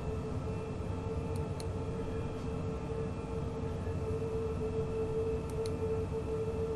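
A train engine hums steadily while running along the track.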